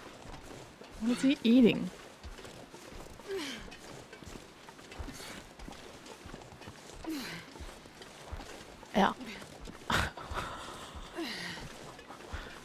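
A young woman talks close to a microphone, with animated bursts of voice.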